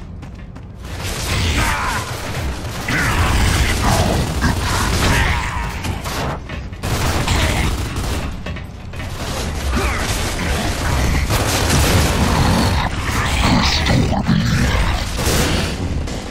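Rapid rifle fire rattles in bursts.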